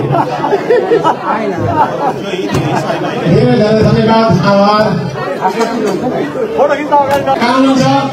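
A man speaks into a microphone, heard through loudspeakers in an echoing hall.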